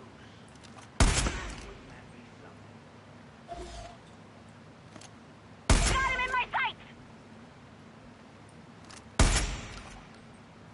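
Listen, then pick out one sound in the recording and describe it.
A rifle fires loud shots that echo sharply.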